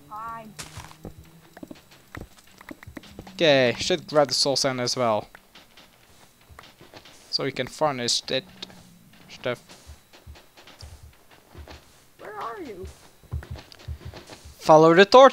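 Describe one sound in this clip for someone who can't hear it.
Game blocks break with soft crunching clicks.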